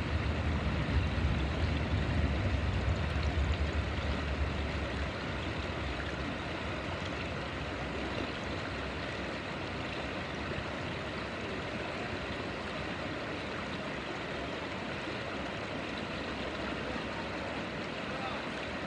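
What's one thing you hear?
A shallow river rushes and splashes over stones close by.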